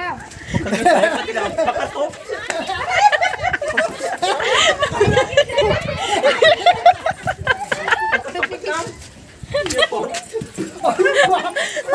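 Several women shout and scream frantically, close by.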